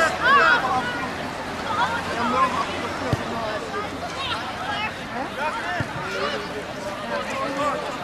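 A large crowd of spectators cheers and shouts outdoors.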